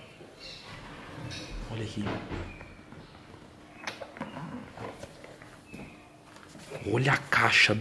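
Cardboard boxes rustle and scrape as they are handled.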